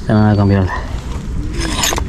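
Metal tools rattle in a pouch.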